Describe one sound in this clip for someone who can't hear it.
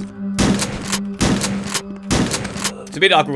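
A shotgun fires several loud blasts.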